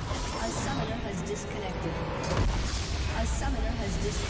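Fantasy game spell effects whoosh and clash.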